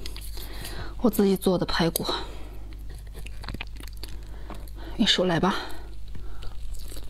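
A young woman speaks softly and close to a microphone.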